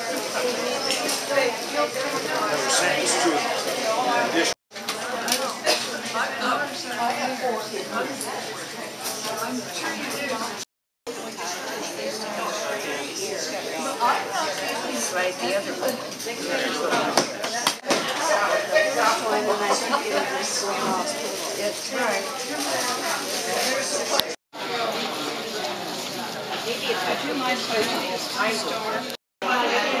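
Elderly women and men chat in a lively hubbub indoors.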